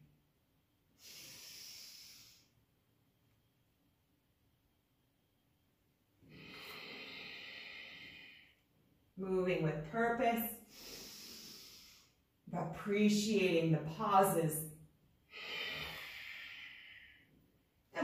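A woman breathes deeply in and out.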